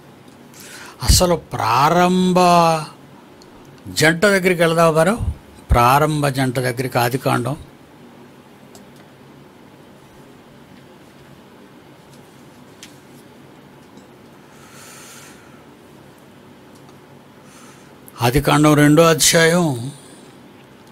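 An elderly man speaks slowly and calmly into a close microphone, pausing between phrases.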